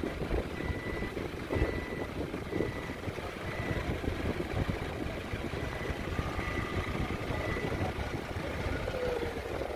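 A forklift engine hums as the forklift drives slowly.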